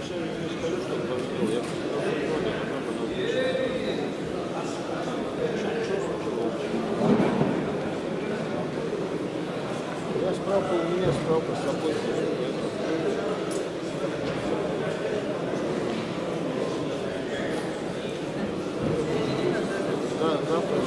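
A crowd of men chatters in a large echoing hall.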